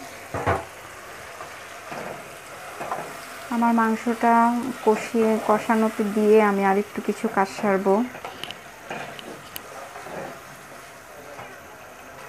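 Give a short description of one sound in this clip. A spatula scrapes and knocks against a metal pot.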